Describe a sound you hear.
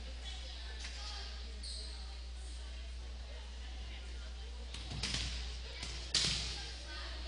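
A volleyball is struck with a sharp smack in a large echoing gym.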